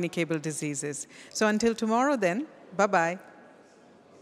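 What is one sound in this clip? A woman speaks with animation into a microphone, in a reverberant hall.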